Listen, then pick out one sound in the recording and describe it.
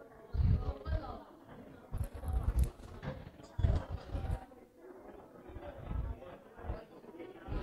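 A crowd of children and adults chatters in a large room.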